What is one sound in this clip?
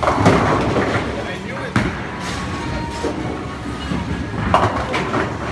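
A bowling ball rolls down a lane.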